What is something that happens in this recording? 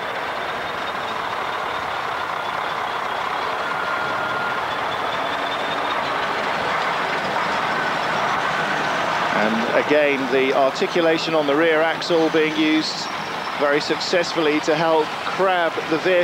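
A truck engine roars and labours as the truck crawls over rough ground.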